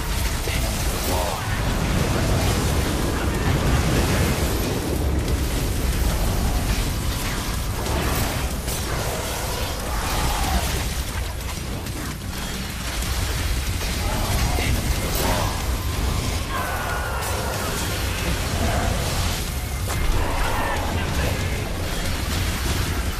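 Swords slash and clang in a fast fight.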